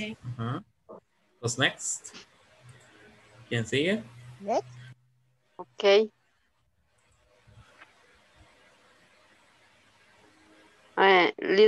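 A man speaks slowly and clearly over an online call, with pauses.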